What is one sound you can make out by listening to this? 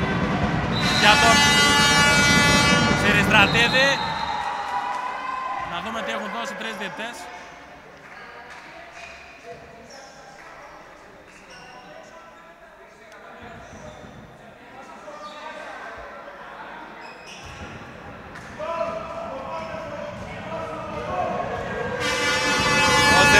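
Air horns blare loudly from the crowd.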